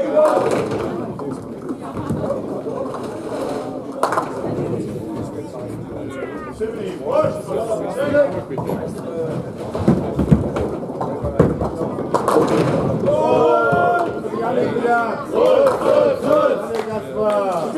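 A bowling ball rumbles along a lane.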